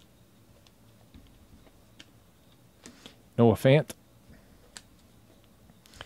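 Trading cards slide and flick against each other as they are sorted by hand.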